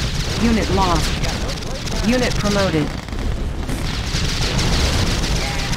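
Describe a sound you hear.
A laser weapon fires with a buzzing hum.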